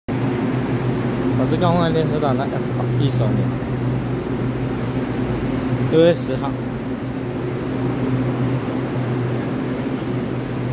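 A stopped train hums steadily in a large echoing hall.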